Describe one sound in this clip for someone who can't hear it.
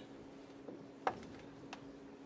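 A snooker ball is set down on the table with a soft click.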